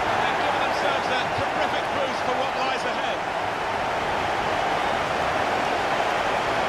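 A large crowd cheers and roars steadily in a stadium.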